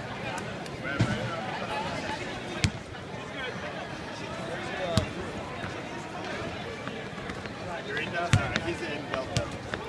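A basketball bounces on a hardwood floor in a large echoing arena.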